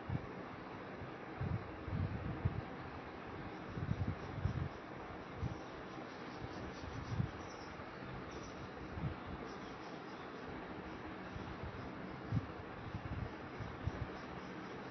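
A paintbrush dabs and strokes softly on paper.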